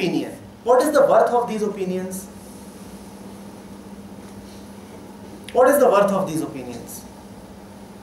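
A middle-aged man speaks calmly close to a microphone, in short phrases with long pauses.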